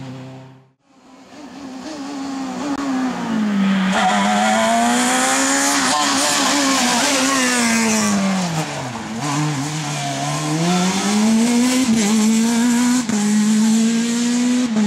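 A second rally car engine screams through the gears as it speeds by.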